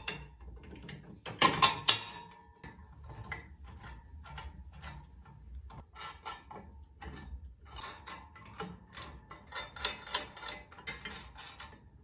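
Metal parts clink and click as a bolt is fitted and tightened.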